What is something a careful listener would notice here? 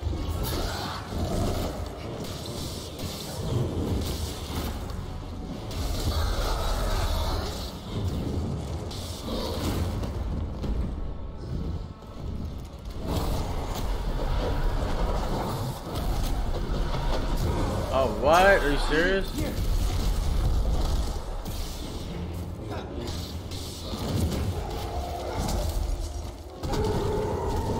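A large creature roars and screeches.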